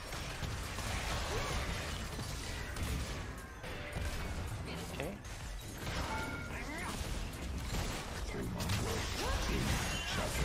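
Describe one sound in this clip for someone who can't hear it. Game spells and combat effects whoosh and clash loudly.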